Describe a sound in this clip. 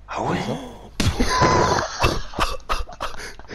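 A loud explosion bursts and booms.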